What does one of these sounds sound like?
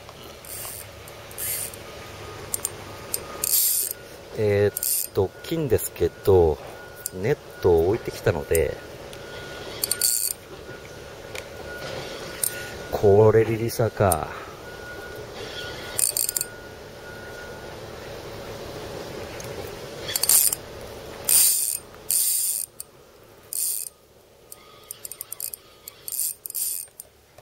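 A spinning reel winds in fishing line.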